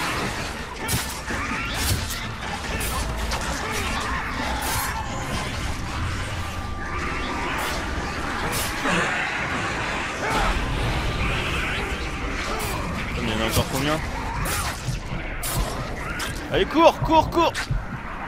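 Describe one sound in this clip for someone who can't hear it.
A young man talks through a headset microphone.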